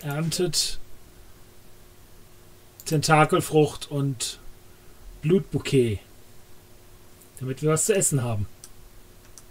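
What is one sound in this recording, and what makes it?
A middle-aged man talks calmly into a close microphone, in short bursts.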